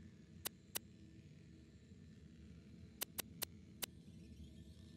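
Short sharp menu clicks sound several times.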